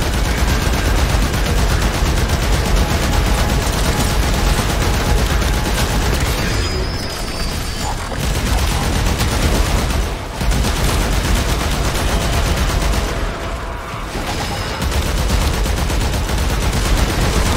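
Rapid gunfire and energy blasts crackle and boom without pause.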